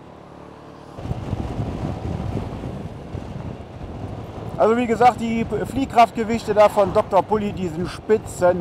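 Wind rumbles loudly against a moving motorcycle.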